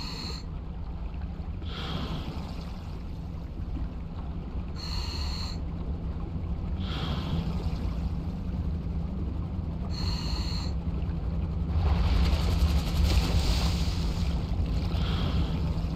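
Water rumbles in a low, steady drone all around.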